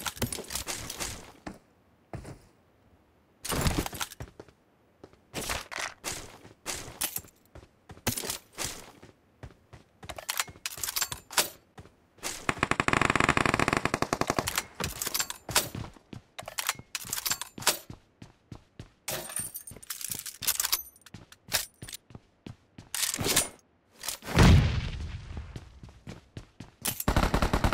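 Footsteps run quickly over grass and metal floors.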